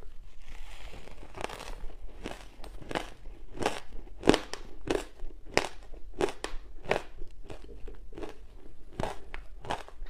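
A young woman chews crumbly food close to a microphone with crisp crunches.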